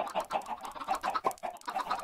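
Chickens cluck.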